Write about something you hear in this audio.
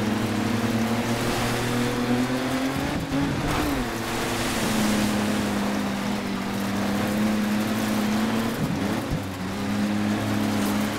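A racing engine roars steadily, its pitch shifting as gears change.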